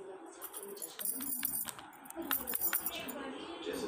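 Small plastic toys knock and clatter together.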